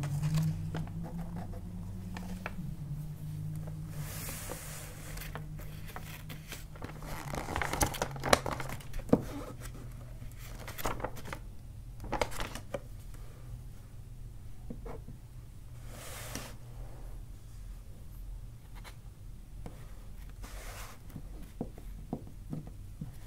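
Plastic sheeting crinkles and rustles under hands.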